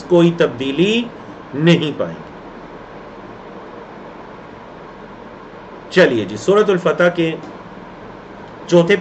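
A man speaks calmly and clearly into a close microphone, with pauses.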